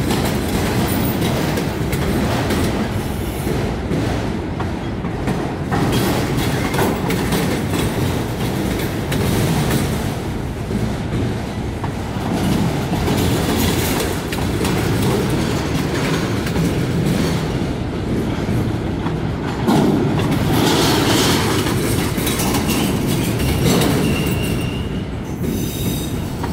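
Freight cars rumble and clatter past close by.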